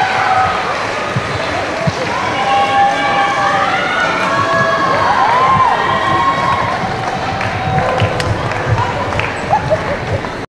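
Dancers' shoes step and shuffle on a stage floor.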